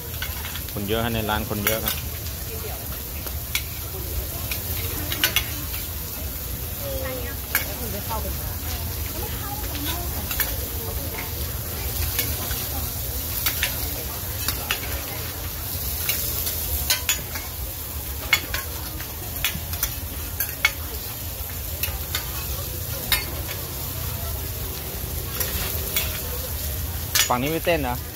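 Food sizzles steadily on a griddle.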